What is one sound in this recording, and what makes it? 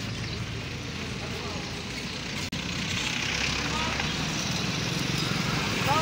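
A motorbike engine idles and passes close by.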